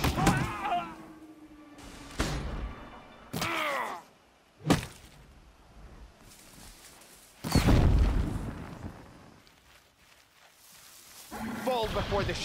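Tall grass rustles as a person creeps through it.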